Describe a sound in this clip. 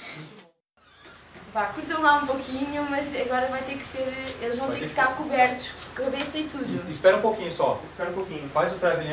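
A young woman talks excitedly.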